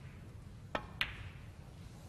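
Snooker balls clack together.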